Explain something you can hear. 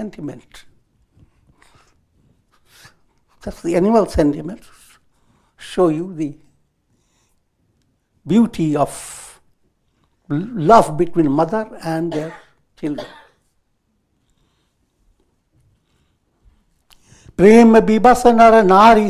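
An elderly man speaks calmly, with pauses, through a clip-on microphone.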